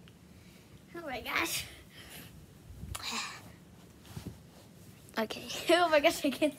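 A young girl laughs loudly close by.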